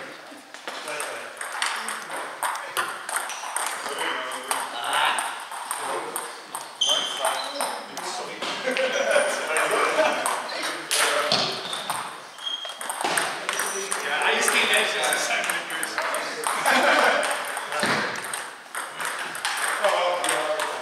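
A table tennis ball clicks against paddles and the table in a large echoing hall.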